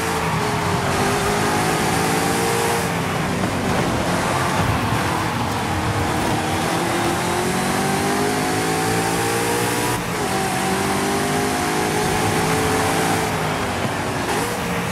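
A racing car engine roars loudly, rising in pitch as it speeds up and dropping as it shifts gears.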